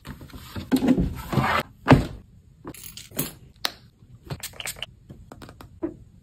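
A canvas bag rustles as it is handled.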